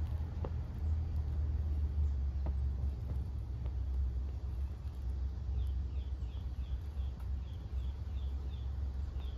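Small flames flicker and crackle softly.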